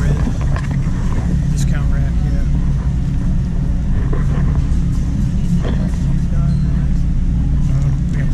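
A shopping cart rattles as its wheels roll over a hard floor.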